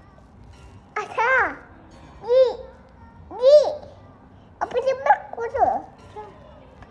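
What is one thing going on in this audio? A small child calls out in high, sing-song bursts close by.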